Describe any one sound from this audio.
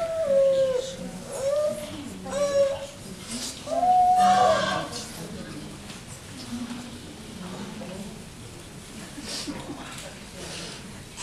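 Young children chatter and shout.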